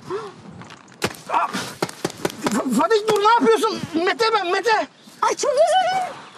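Paintball guns fire in rapid bursts of sharp pops.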